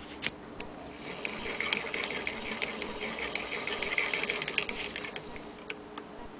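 A sewing machine's bobbin winder whirs as it spins.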